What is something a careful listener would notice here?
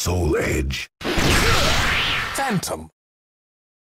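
A sword swishes sharply through the air.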